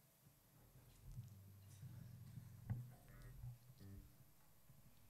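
A bass guitar plays a few soft low notes in a hall.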